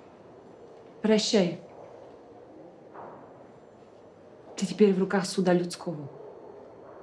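A woman speaks calmly and coolly, close by.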